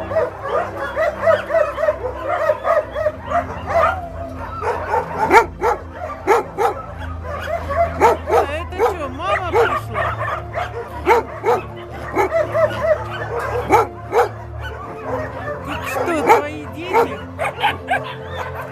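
Puppies whine and yelp close by.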